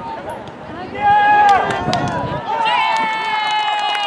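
Spectators cheer and shout excitedly nearby.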